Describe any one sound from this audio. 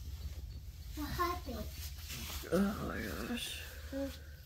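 A baby babbles close by.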